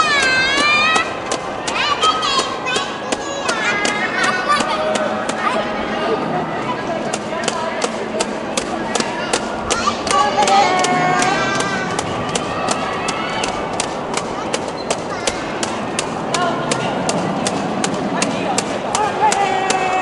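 A large crowd of spectators cheers and shouts encouragement nearby.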